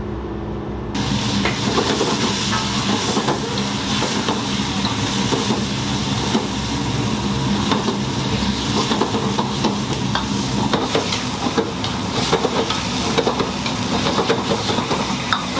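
Meat sizzles loudly in a hot wok.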